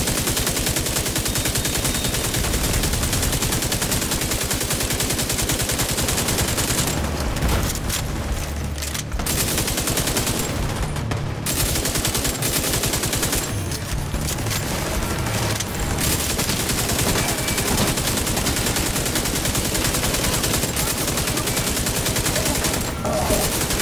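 Rapid gunfire rattles on and on.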